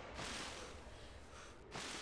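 Water splashes and drips.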